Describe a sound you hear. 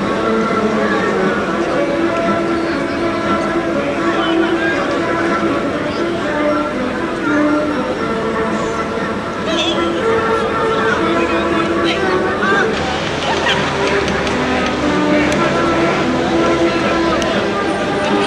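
A large group of men murmurs outdoors at a distance.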